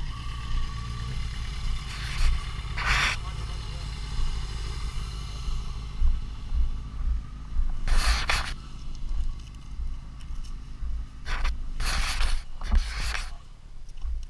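Wind buffets and roars past a moving motorcycle.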